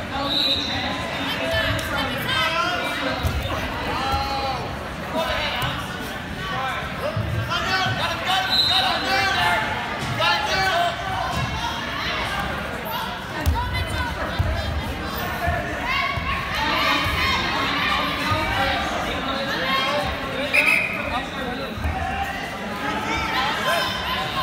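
A crowd of people cheers and shouts loudly in a large echoing hall.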